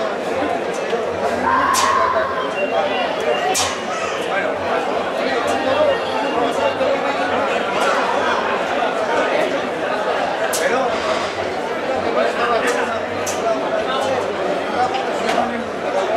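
Hooves clatter on the pavement as bulls run by.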